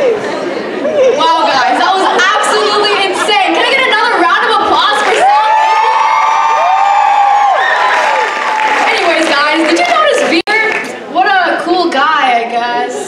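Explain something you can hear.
A young woman sings into a microphone over loudspeakers in a large hall.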